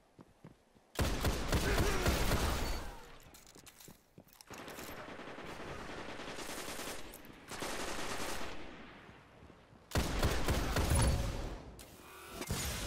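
Gunshots fire in loud rapid bursts.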